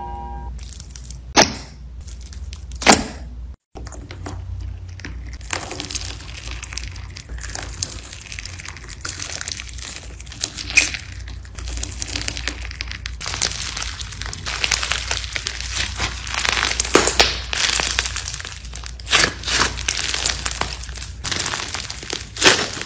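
Sticky slime crackles and pops as fingers press and squeeze it.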